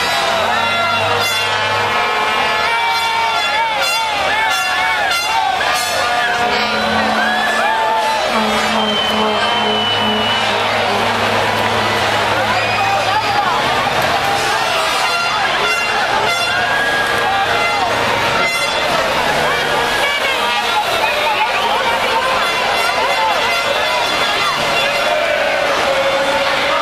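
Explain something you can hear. A large crowd of men and women cheers, sings and chatters loudly outdoors.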